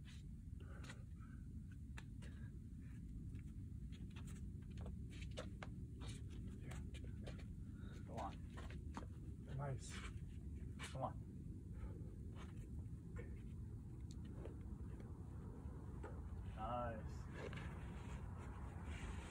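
Climbing shoes scuff and tap against rock.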